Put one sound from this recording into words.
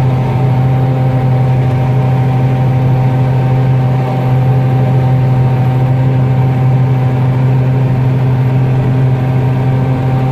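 A combine harvester engine drones steadily from inside the cab.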